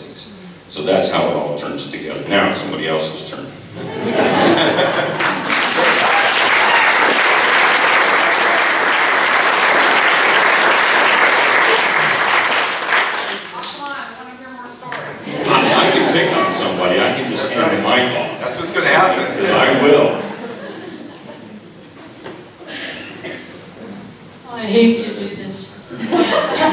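A man speaks with animation through a microphone in a large echoing room.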